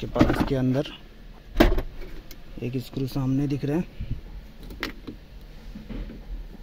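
Plastic trim clicks and knocks as it is pried loose.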